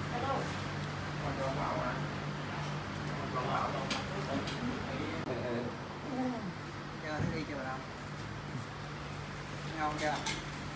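A man speaks gently nearby.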